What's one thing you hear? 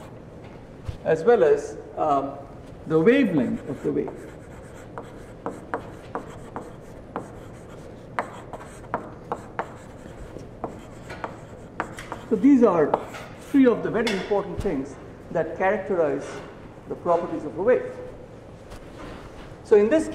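A man speaks calmly, in a large echoing room.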